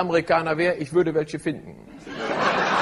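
A man speaks to an audience through a microphone.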